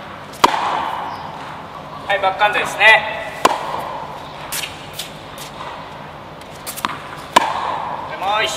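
A tennis racket strikes a ball with a sharp pop that echoes through a large hall.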